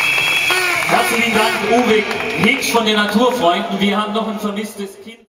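A young man speaks loudly into a microphone over loudspeakers.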